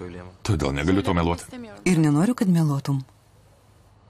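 A young woman speaks softly and with emotion, close by.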